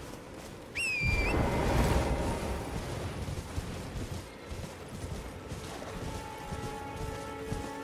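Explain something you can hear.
A horse gallops over soft ground with heavy hoofbeats.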